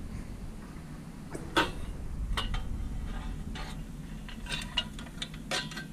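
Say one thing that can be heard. Metal parts of a toy truck clank and rattle as they are handled.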